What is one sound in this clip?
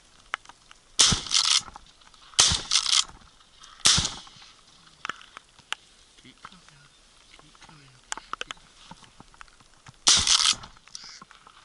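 A shotgun fires several loud blasts outdoors.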